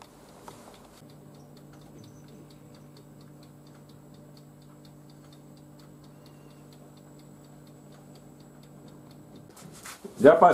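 An oven fan hums steadily.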